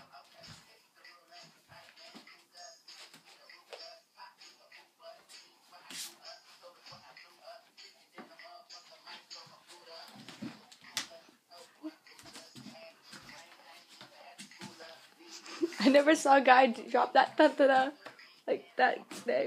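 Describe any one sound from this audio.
Bare feet thump and shuffle on a wooden floor.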